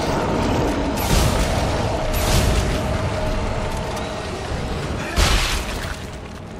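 A plasma weapon fires with sharp bursts.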